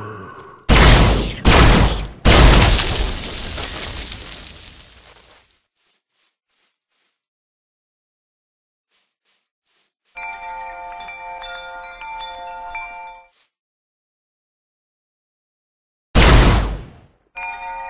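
A futuristic gun fires loud blasts that ring out and fade.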